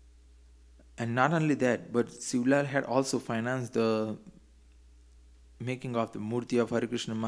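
A man chants slowly into a microphone, with long held notes.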